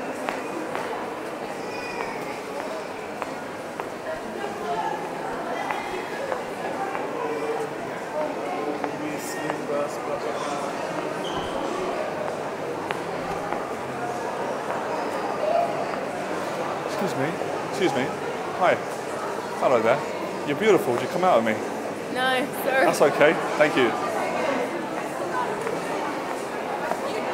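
A crowd of people chatters steadily all around.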